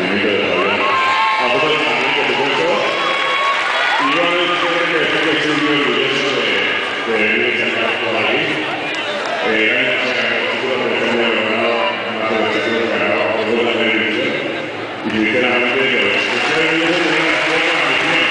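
A large crowd cheers and chants loudly.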